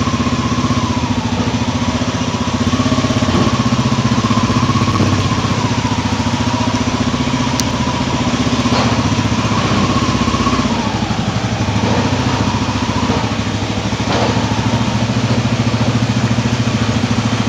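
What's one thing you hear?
Tyres rumble over a cobblestone street.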